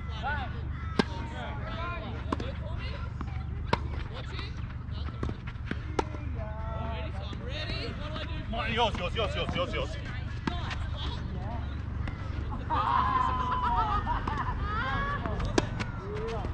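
Tennis rackets strike a ball with sharp pops.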